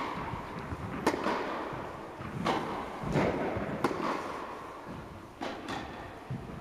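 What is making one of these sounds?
Tennis balls are struck with rackets, echoing in a large indoor hall.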